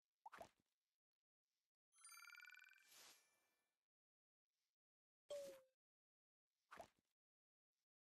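Game interface sounds chime and click.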